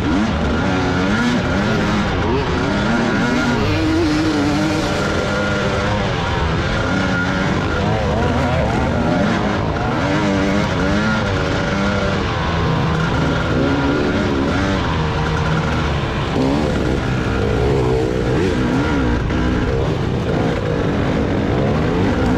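Several dirt bike engines roar and rev up and down close by.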